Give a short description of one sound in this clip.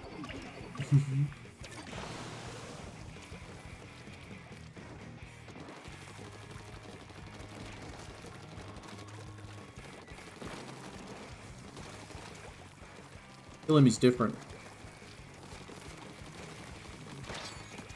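Game sound effects of ink splashing play throughout.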